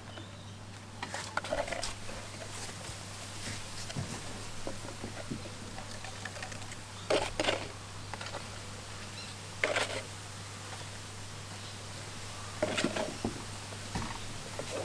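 A spoon scrapes inside a plastic tub.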